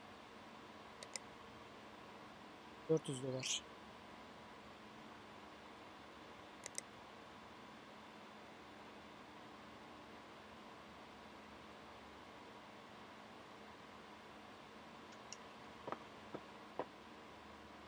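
Short, sharp clicks sound now and then.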